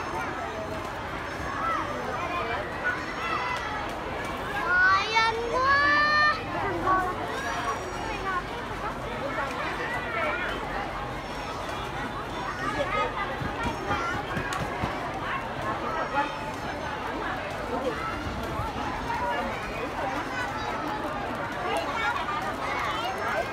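A large crowd of children chatters and calls out all around, outdoors.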